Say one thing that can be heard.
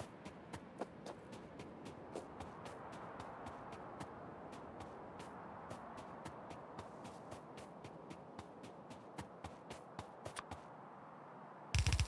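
Footsteps patter quickly on dry ground.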